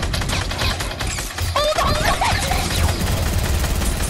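A shotgun fires in a video game.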